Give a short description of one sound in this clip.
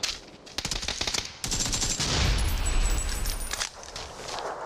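A grenade explodes with a deep boom.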